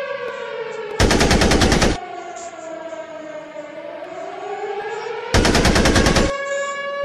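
A tank cannon fires with loud bursts.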